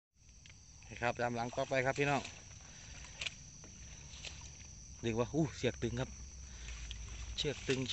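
Water splashes as feet wade through a shallow stream.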